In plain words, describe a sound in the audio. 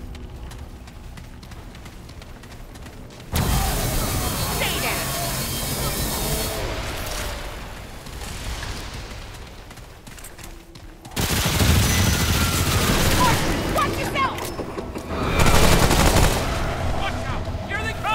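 Footsteps splash on wet pavement.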